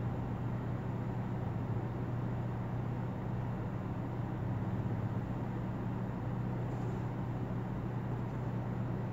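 A car engine idles with a steady low hum close by.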